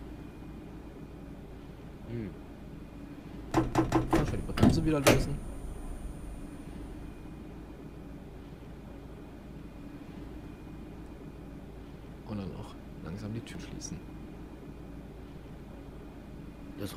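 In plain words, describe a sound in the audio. A train's electric equipment hums low and steady while the train stands still.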